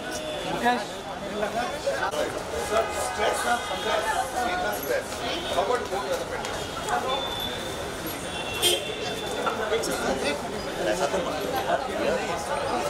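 A crowd of men talk and call out at once, close by.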